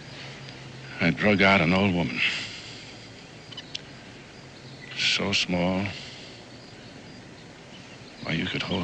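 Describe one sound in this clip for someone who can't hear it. An older man speaks in a low, gruff voice up close.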